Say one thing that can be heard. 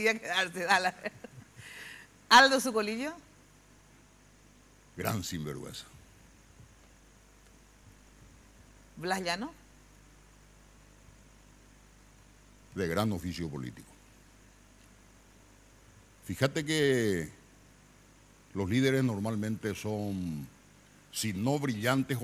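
An elderly man speaks through a microphone in short bursts with long pauses.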